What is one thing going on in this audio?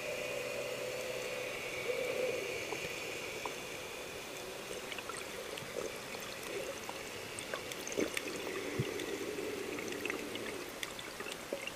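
Water rushes with a muffled hiss underwater.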